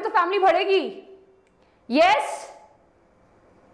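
A young woman speaks briefly and brightly, close to a microphone.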